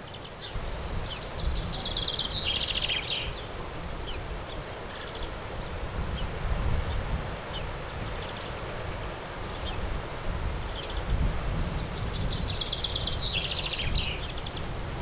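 Sparrows twitter in rapid trills.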